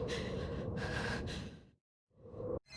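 A young woman gasps in fear.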